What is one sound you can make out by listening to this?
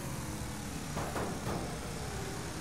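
Car bodies bang and crunch together in a collision.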